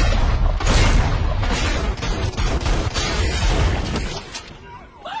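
Gunshots fire loudly in rapid bursts.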